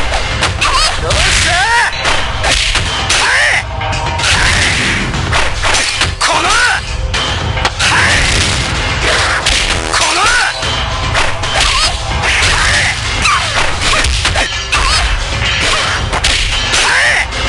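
Punches and kicks land with sharp smacks.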